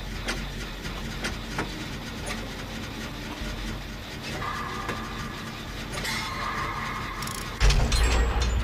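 A machine clanks and rattles as it is repaired.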